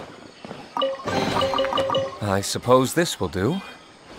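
A treasure chest creaks open with a sparkling, rising jingle.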